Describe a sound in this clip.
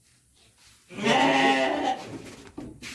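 A sheep bleats loudly close by.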